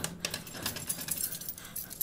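A key rattles in a door lock.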